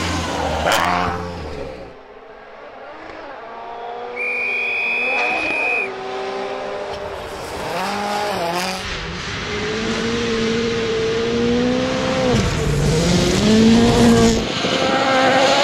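Gravel sprays under a car's tyres.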